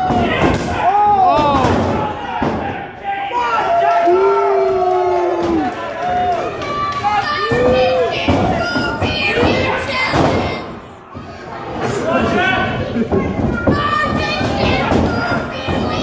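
Bodies slam onto a wrestling mat with heavy thuds.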